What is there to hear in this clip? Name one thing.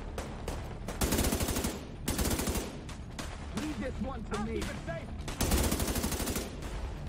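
Rapid automatic gunfire rattles in loud bursts.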